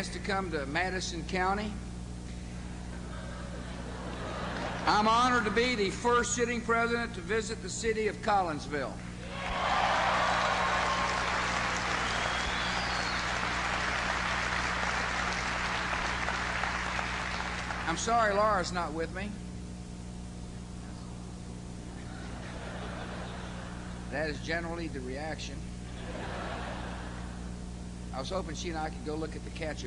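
A middle-aged man speaks forcefully into a microphone, heard through loudspeakers in a large hall.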